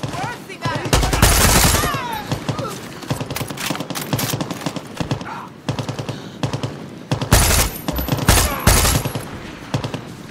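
Loud explosions boom and rumble.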